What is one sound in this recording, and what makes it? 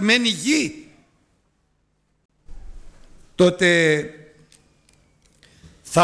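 An older man speaks slowly and solemnly into a microphone.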